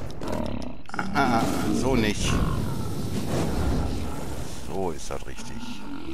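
A large creature roars and groans as it dies.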